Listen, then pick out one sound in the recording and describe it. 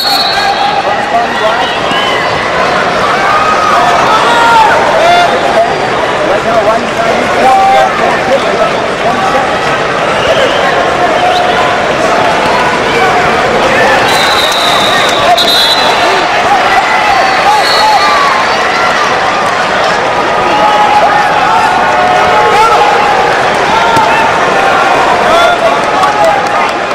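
A large crowd cheers and shouts throughout, echoing in a big hall.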